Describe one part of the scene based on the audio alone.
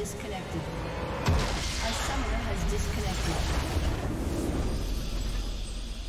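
A game structure explodes with a loud rumbling blast.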